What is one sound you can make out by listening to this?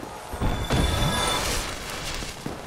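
A magical shimmering whoosh swells and fades.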